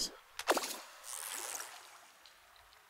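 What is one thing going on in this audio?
A fishing line whips out with a whoosh.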